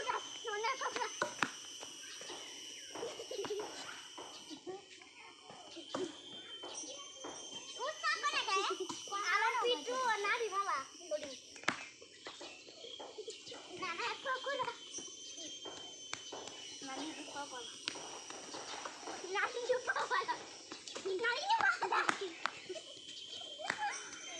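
Young children shout and chatter excitedly nearby outdoors.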